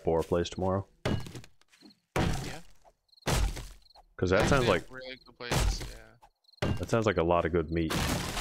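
An axe chops into a tree trunk with repeated heavy thuds.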